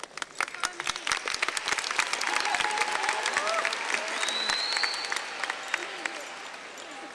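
An audience applauds and cheers in a large echoing hall.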